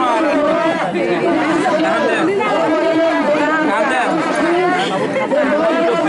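A crowd of men and women chatter and laugh close by.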